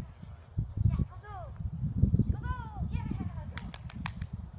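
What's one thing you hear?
A young woman calls out brightly to a dog, close by outdoors.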